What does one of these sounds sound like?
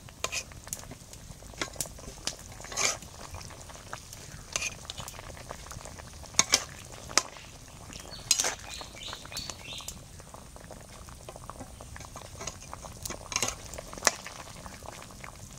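A thick curry bubbles and simmers.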